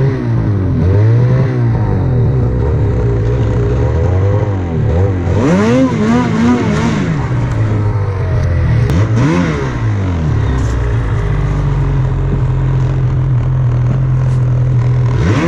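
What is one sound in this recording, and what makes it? Snow hisses under a snowmobile's track.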